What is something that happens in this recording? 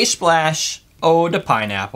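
Liquid pours from a can into a glass.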